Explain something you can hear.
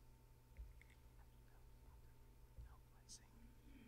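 A man murmurs quietly to another man nearby.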